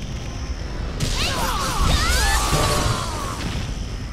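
A heavy sweeping blow whooshes with a burst of clanging.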